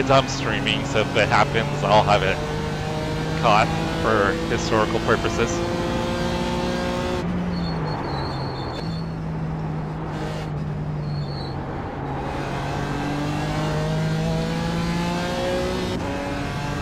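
A race car engine roars steadily, its pitch rising and dropping with gear changes.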